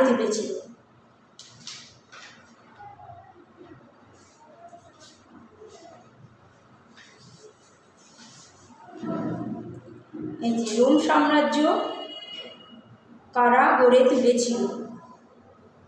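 A woman speaks calmly and clearly close by, with pauses.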